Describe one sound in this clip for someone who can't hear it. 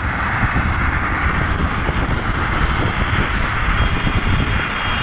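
Wind buffets loudly, heard outdoors while moving fast.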